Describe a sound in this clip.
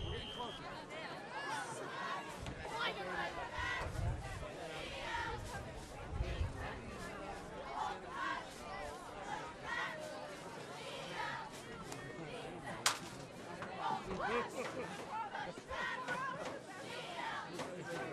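A crowd of young men and boys talk and call out nearby, outdoors.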